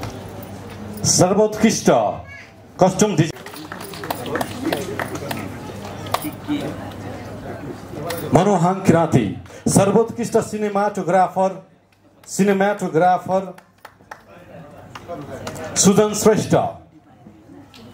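A man announces loudly over a loudspeaker in a large hall.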